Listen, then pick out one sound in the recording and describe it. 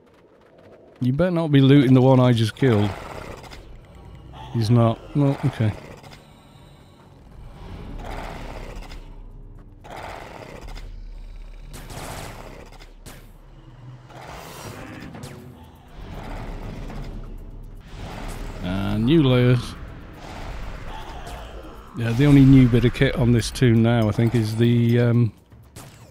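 A man speaks with animation through a close microphone.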